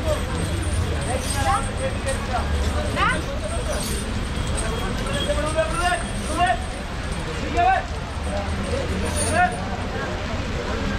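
A crowd of people talks and calls out nearby.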